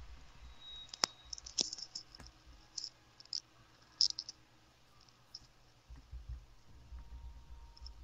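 Short interface clicks and chimes from a game sound now and then.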